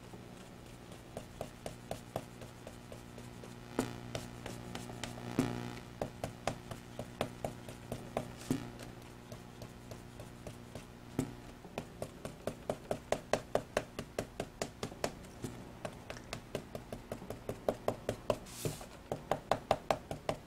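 A foam ink dauber dabs rapidly on paper with soft tapping.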